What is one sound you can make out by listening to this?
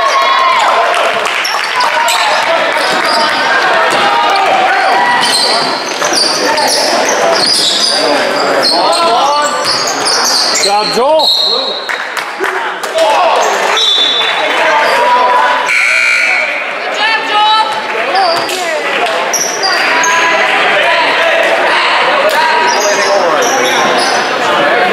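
A crowd of spectators chatters and shouts in an echoing gym.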